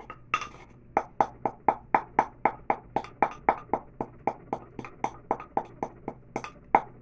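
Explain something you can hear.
A wooden pestle pounds rapidly and rhythmically.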